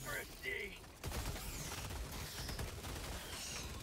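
Rapid gunfire rattles nearby.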